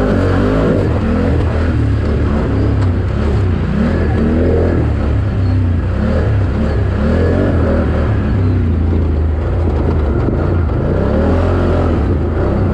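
A motorcycle engine revs hard up and down close by.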